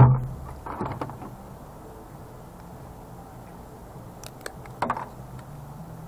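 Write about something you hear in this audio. Pliers snip through wire.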